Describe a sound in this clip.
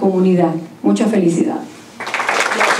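A woman speaks into a microphone over loudspeakers.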